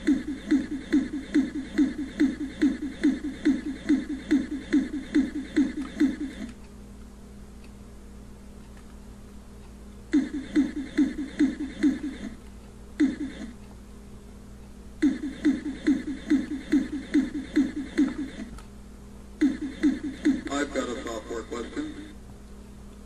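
A video game plays rapid, pulsing electronic chomping beeps in bursts.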